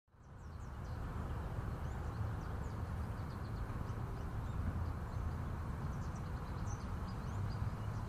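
Wind blows steadily across an open field outdoors.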